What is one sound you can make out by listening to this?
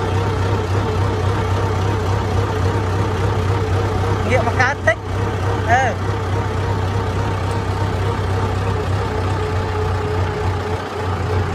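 A tractor engine chugs steadily up close.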